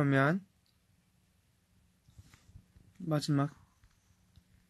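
A young man speaks softly and briefly, close to the microphone.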